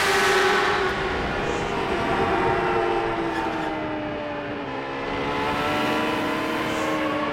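A racing car engine screams at high revs, its pitch dipping and climbing.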